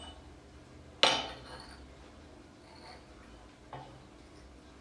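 A metal bell is struck and rings out briefly.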